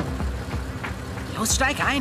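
A young man speaks from a car nearby.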